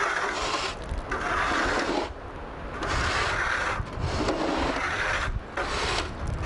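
Many footsteps crunch on packed snow.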